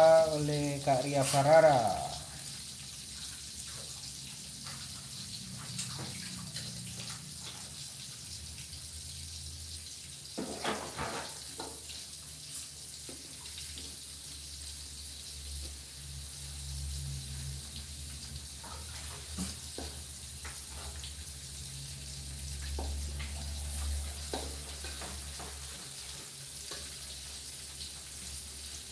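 Food sizzles steadily in hot oil.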